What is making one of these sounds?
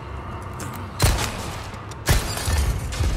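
Gunshots crack loudly with a short echo.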